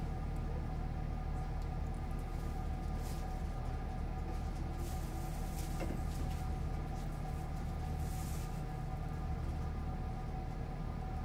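A train engine idles with a steady low hum.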